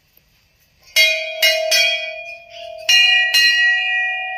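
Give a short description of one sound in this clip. A metal bell is struck, and it clangs and rings on.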